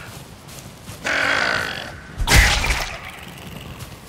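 A weapon swings through the air with a whoosh.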